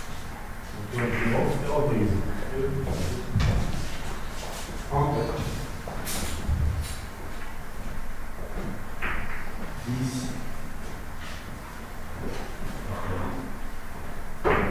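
A man talks quietly nearby.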